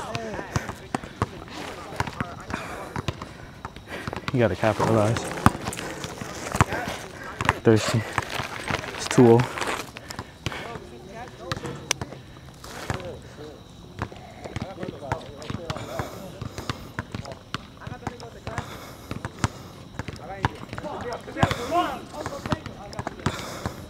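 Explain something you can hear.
A basketball bounces repeatedly on a hard outdoor court.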